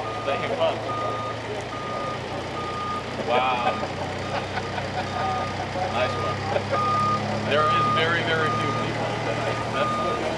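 A tug engine hums steadily.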